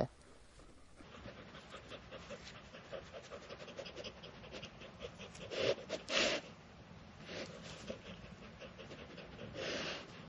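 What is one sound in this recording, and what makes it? A dog sniffs loudly at the ground.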